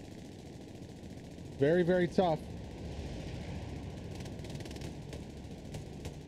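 Gunfire and explosions rumble in the distance.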